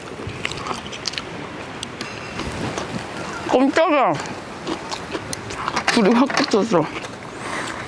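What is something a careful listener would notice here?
A young woman chews food noisily.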